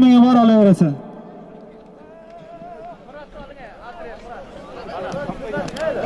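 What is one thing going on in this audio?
A crowd of men shouts and calls out outdoors.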